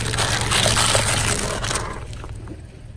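A car tyre rolls over small squishy balls, crushing them with a wet crunch.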